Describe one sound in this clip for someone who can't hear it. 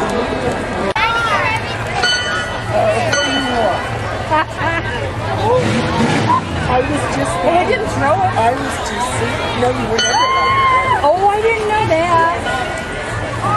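Children shout and squeal in a crowd.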